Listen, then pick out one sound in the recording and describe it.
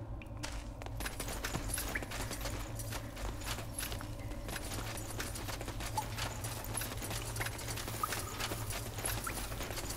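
Footsteps tread steadily over stone.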